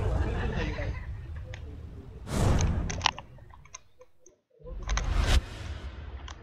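Flames roar and whoosh.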